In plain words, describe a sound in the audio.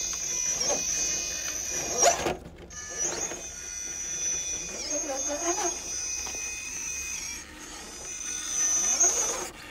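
A small electric motor whines steadily.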